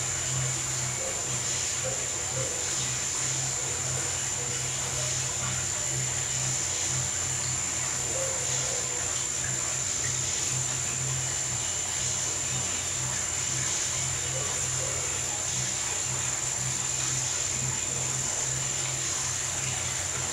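Water sloshes as a dog wades through it.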